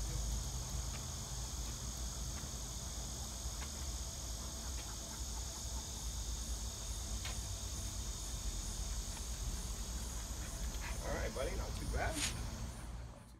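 Footsteps walk on pavement outdoors.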